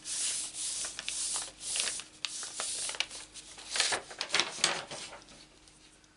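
Hands rub and slide over sheets of paper.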